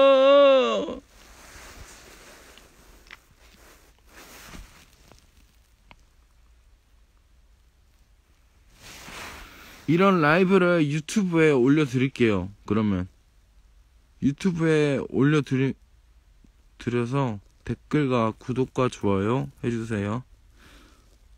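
A young man talks calmly and close up, in short bursts with pauses.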